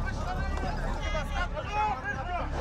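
A man shouts with distress close by.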